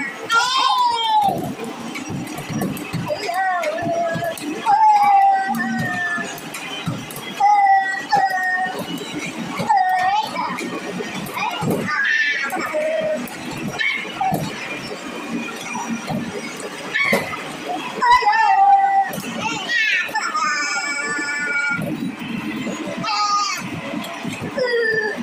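A racing arcade game's engine roars and revs through loudspeakers.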